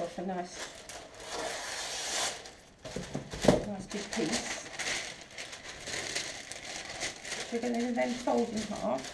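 Plastic sheeting crinkles and rustles.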